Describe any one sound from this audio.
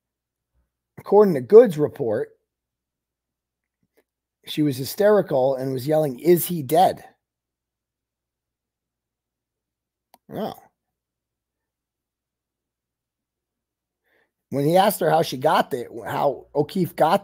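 A man talks calmly and clearly into a microphone, reading out in short bursts with pauses.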